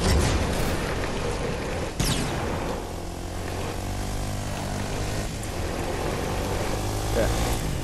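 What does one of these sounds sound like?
A quad bike engine hums steadily as it drives over snow.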